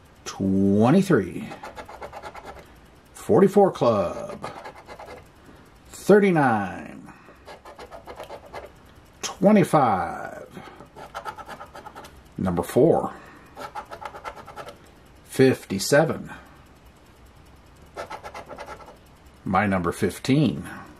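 A scratcher scrapes the coating off a scratch-off lottery ticket.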